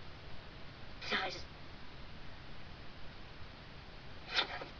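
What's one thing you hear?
A young woman speaks softly and briefly close to a microphone.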